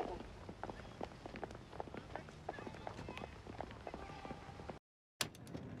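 Footsteps tap on a pavement as people walk by.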